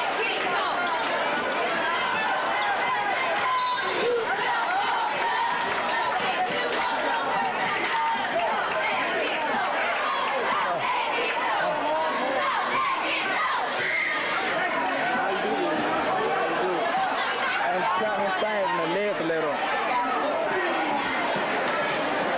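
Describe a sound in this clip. A large crowd chatters and cheers loudly in an echoing gym.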